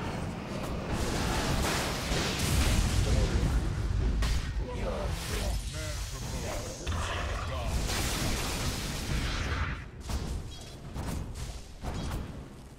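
Magical blasts crackle and boom in a hectic fight.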